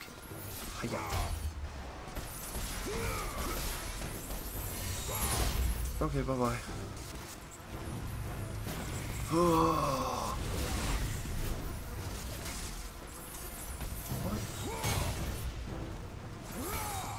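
Blades clash and slash against enemies with sharp impacts.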